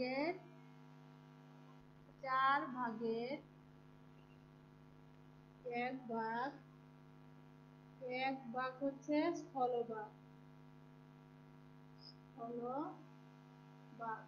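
A woman speaks slowly in short phrases, close by, as if reading aloud.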